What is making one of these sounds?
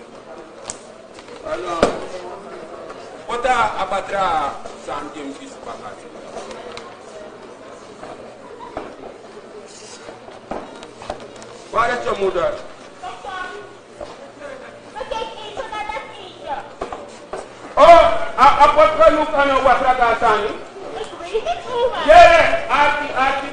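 Elderly women talk loudly and with animation in a large hall.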